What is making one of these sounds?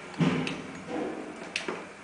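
A button clicks as a finger presses it.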